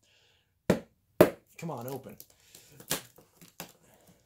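Hands pat and tap on a cardboard box.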